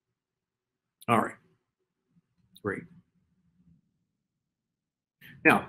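A middle-aged man speaks calmly through a microphone in short bursts.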